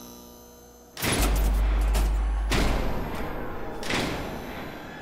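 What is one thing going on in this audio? An electric sign crackles and hums loudly as it flickers on.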